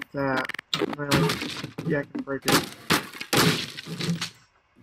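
A crowbar strikes a wooden plank with hard knocks.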